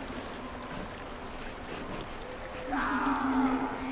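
A stream trickles and flows.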